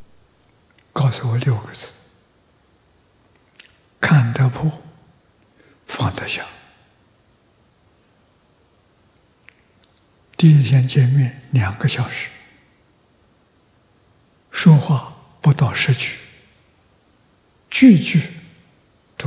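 An elderly man speaks calmly into a microphone in short phrases with long pauses.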